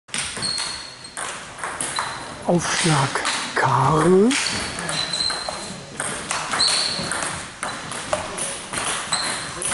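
A table tennis ball clicks back and forth off paddles and tables in an echoing hall.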